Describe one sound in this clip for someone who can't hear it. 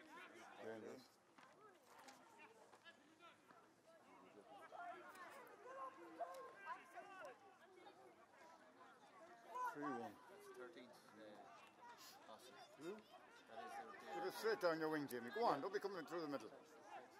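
Players shout and call to each other outdoors across an open field.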